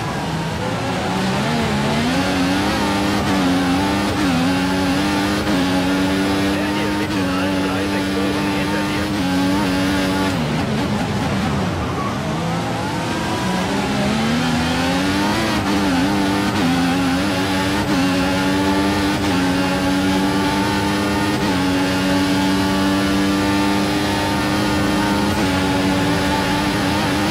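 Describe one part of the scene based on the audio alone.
A racing car engine roars and whines as it revs up through the gears.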